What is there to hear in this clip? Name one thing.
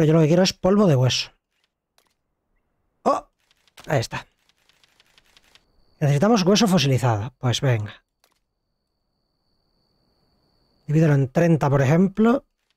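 A man talks into a close microphone in bursts, with animation.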